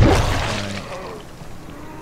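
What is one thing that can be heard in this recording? A blade strikes flesh with a wet thwack.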